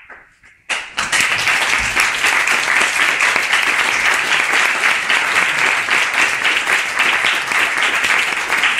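A marimba is struck rapidly with mallets.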